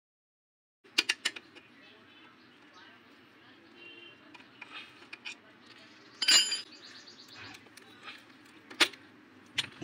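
A metal spanner clicks and clinks against a bolt.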